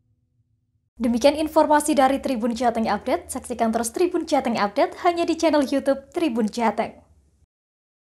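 A young woman speaks clearly and brightly into a microphone.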